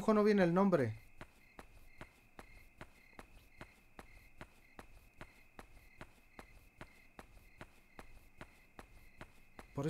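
Footsteps tap at a steady, quick pace.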